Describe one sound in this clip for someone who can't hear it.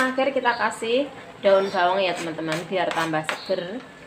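Chopped vegetables are scraped off a board into a wok.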